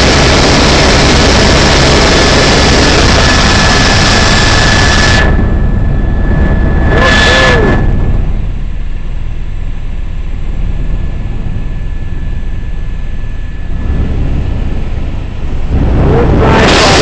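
A helicopter engine and rotor roar loudly and steadily from inside the cabin.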